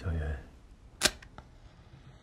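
A match strikes and flares.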